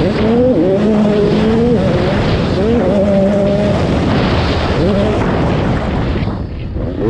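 Knobby tyres rumble over loose dirt.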